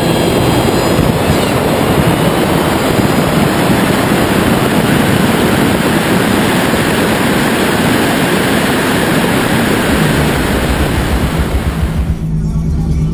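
Wind roars loudly over a speeding car.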